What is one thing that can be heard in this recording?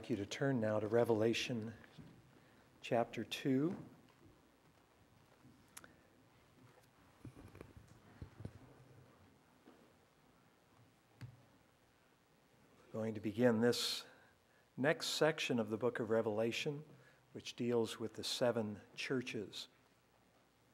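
An elderly man speaks slowly and calmly through a microphone, with long pauses.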